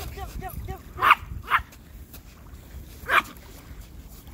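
A small dog barks sharply a few times.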